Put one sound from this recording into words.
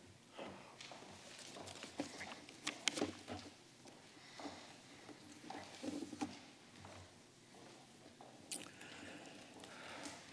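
An elderly man speaks quietly into a microphone.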